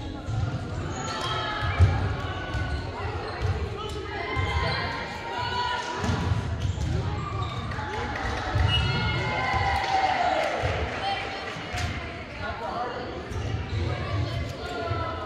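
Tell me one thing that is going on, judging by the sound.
A volleyball thumps off a player's hands.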